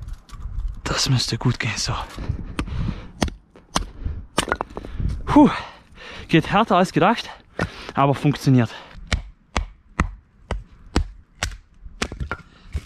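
Wooden logs knock against each other with sharp hollow clacks.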